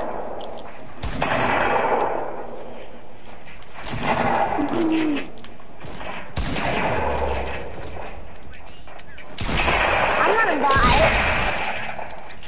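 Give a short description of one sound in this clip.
Wooden walls and ramps are put up with quick clattering thuds.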